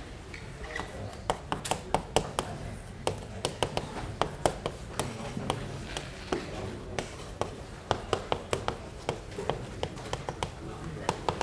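Chalk taps and clicks sharply on a blackboard in quick bursts.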